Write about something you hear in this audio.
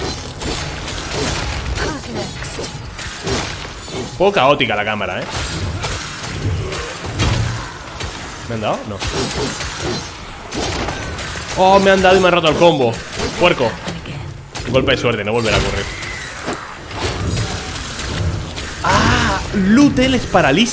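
Swords clash and slash.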